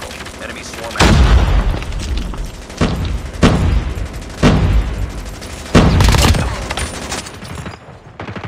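Gunfire rattles in loud, sharp bursts.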